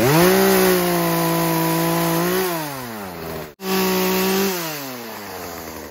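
A chainsaw cuts into wood.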